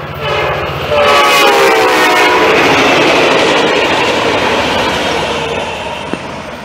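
Train wheels clatter and roar along the rails.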